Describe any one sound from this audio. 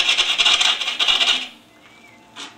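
A turning tool scrapes loudly against spinning wood, then stops.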